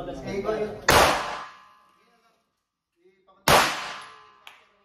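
A pistol fires two loud shots indoors with a short ringing echo.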